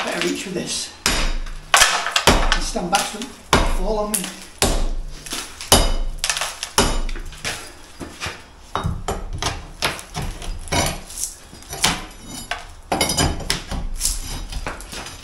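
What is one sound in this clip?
Sharp metal blows knock loudly against a wooden frame.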